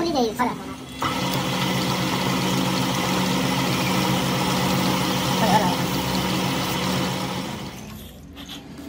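A lathe motor hums steadily as the chuck spins, then winds down.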